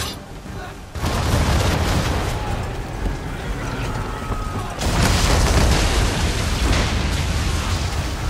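Cannons boom loudly, one blast after another.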